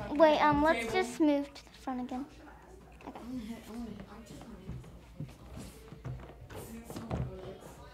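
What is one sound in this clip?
A young girl speaks with animation.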